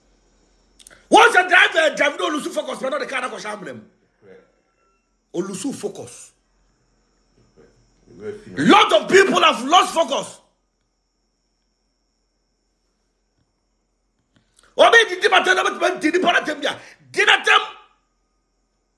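A man speaks with animation close to a phone microphone, in bursts with pauses.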